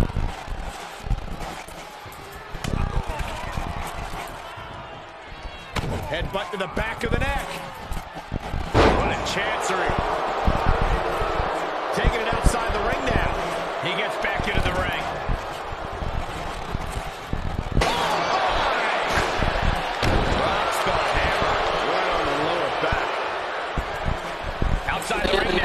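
A crowd cheers and roars in a large arena.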